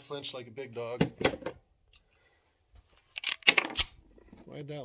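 A pistol clicks and clacks as it is handled.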